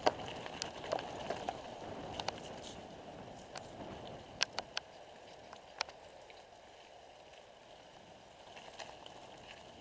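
Small stones click and rattle under bicycle tyres.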